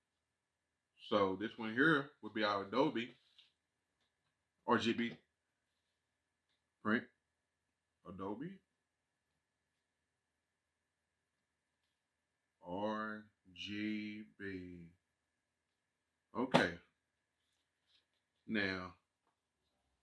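A man speaks into a close microphone in short bursts with pauses.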